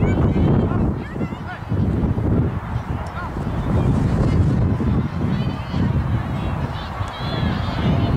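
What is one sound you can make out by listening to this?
Children and adults shout and call out in the distance.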